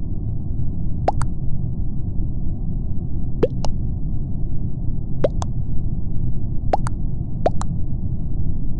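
A short electronic double blip sounds each time a vote is cast in a game.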